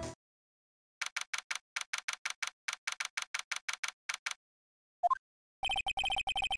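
Short electronic blips tick rapidly in a steady run, like text typing out.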